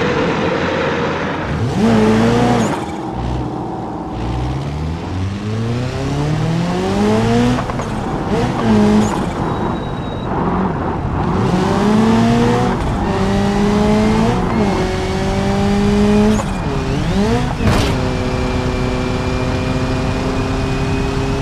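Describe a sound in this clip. A racing car engine roars and climbs in pitch again and again as it shifts up through the gears.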